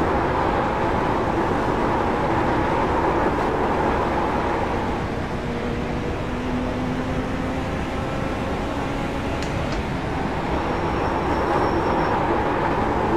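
A racing car engine roars loudly, rising and falling as it shifts gears.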